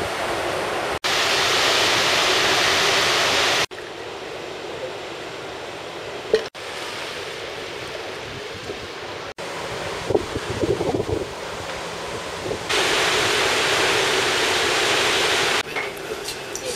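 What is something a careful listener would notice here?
Churning water rushes loudly in a ship's wake.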